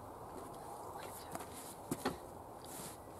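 Footsteps crunch softly on loose soil.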